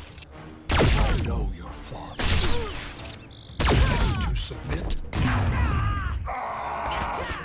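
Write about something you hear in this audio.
Heavy blows and energy blasts crash loudly again and again in a fight.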